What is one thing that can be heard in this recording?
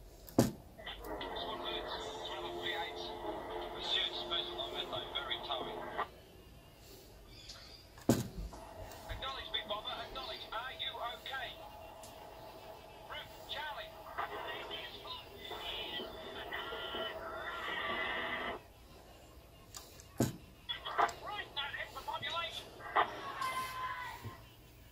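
A small electronic device plays tinny music through a little speaker.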